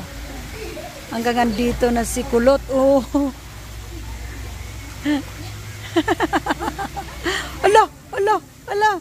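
A young girl talks and calls out nearby, outdoors.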